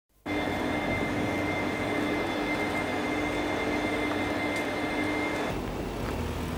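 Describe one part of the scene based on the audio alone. A vacuum cleaner hums steadily in a large echoing hall.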